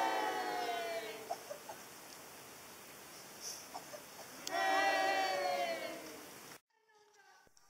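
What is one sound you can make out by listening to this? Several women sing together in a held, sliding chorus, heard from a distance in an open-air space.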